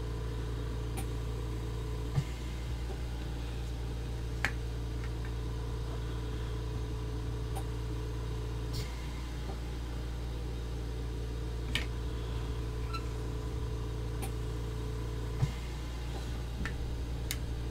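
Plastic model parts click and tap as hands handle them.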